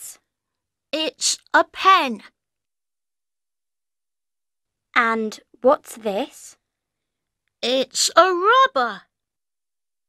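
A young boy answers with animation.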